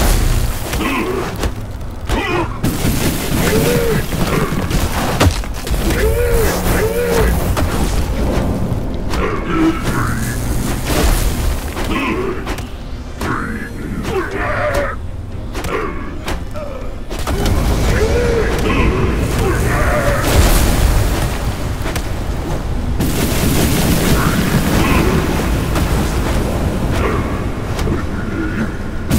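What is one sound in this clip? Electric bolts crackle and zap in bursts.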